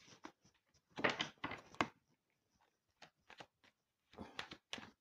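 Playing cards rustle and flick in a hand close by.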